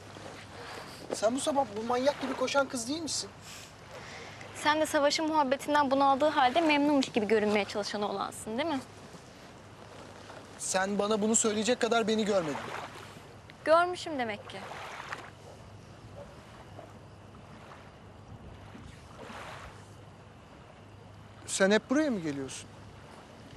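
A young man speaks quietly.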